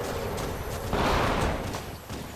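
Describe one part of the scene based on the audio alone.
A plasma blast bursts with a rushing roar.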